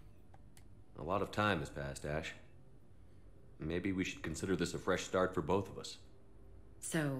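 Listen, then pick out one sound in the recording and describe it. A man speaks calmly and softly, close by.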